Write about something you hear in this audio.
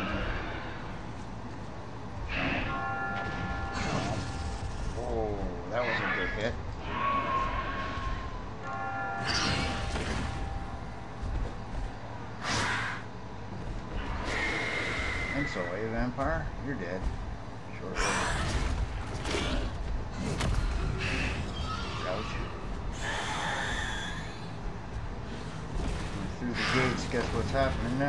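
A man talks through a microphone.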